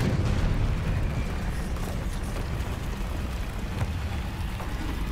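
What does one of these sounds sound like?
A troll growls deeply.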